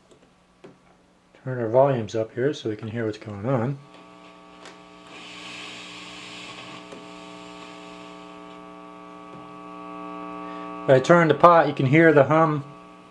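An amplifier hums steadily.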